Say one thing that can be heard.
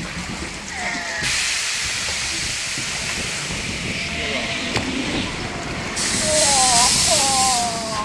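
Water rushes and splashes down a flume.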